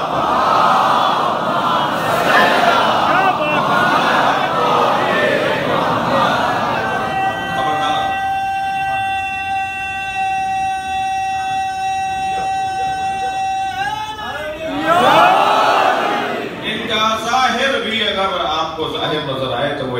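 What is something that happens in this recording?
A man chants loudly through a microphone and loudspeaker in an echoing hall.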